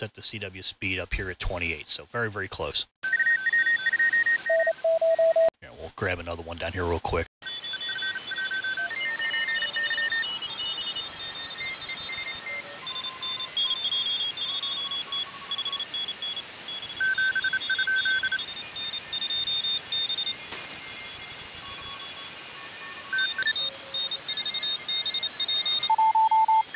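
Digital radio signals chirp in short, steady high beeps over a hiss of static.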